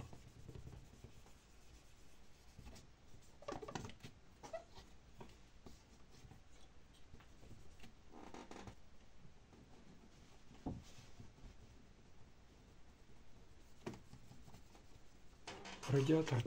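Fingers rub and scrape against a metal part.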